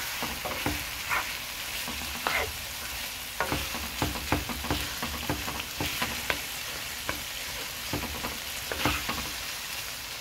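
A spatula scrapes and knocks against a pan.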